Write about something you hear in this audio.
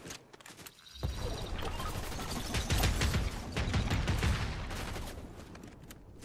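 A rifle fires gunshots in a video game.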